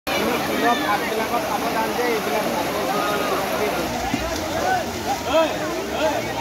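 A stream rushes over rocks.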